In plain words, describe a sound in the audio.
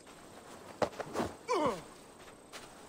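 A man grunts with effort while lifting a body.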